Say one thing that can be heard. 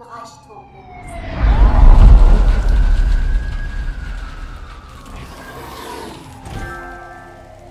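A deep whooshing rush swells and slowly fades.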